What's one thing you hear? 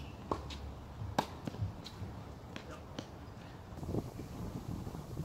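Footsteps scuff on a hard court.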